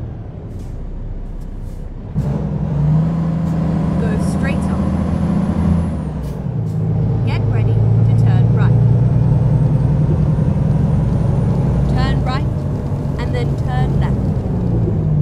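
A truck's diesel engine rumbles steadily, rising and falling as it shifts gears.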